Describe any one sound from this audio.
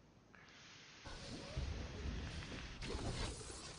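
Game spells and attacks crackle and boom in a busy fight.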